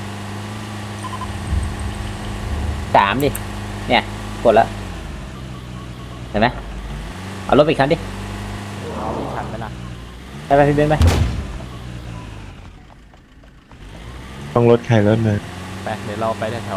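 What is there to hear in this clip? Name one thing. A truck engine drones steadily as it drives.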